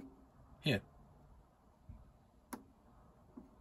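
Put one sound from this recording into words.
A button on a power unit clicks as a finger presses it.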